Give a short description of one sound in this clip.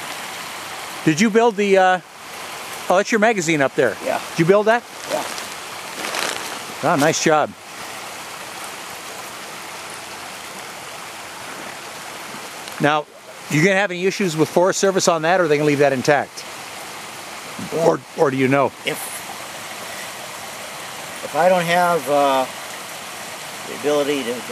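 An elderly man talks with animation close by, outdoors.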